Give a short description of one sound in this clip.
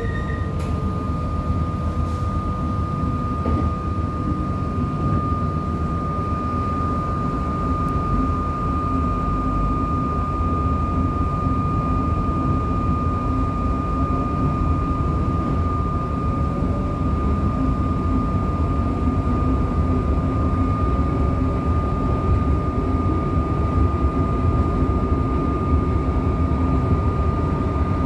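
A train rumbles along the tracks, heard from inside a carriage.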